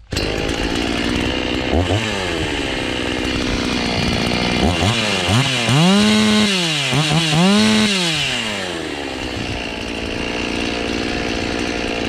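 A chainsaw engine idles with a steady rattling drone.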